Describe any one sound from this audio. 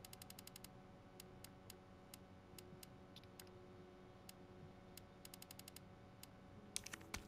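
Short menu ticks click rapidly, in quick bursts and single taps.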